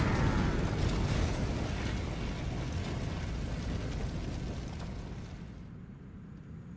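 A blaze of fire roars loudly, then fades away.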